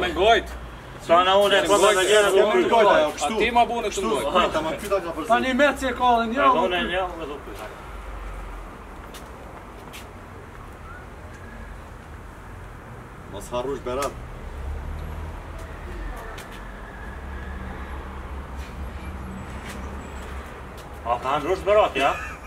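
A man talks loudly and with animation nearby.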